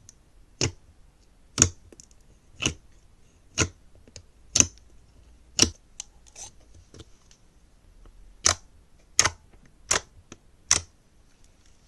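Fingers press into thick slime with sharp, sticky pops, about once a second.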